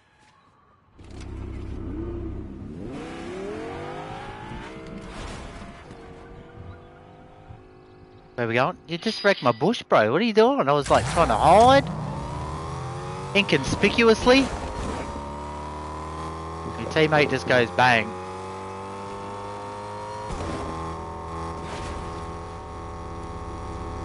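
A car engine revs and hums as it drives.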